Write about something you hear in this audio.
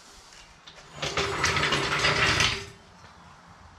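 A floor jack rolls noisily across a concrete floor.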